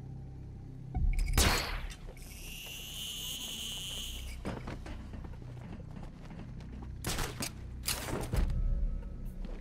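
A grappling launcher fires with a sharp whoosh.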